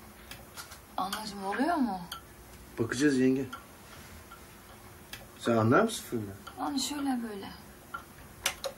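A young woman speaks softly and closely.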